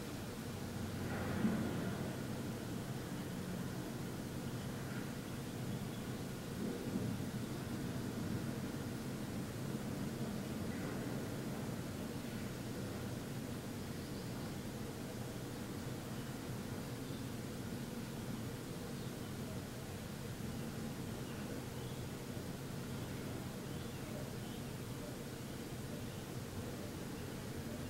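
A man hums a low, steady tone close by.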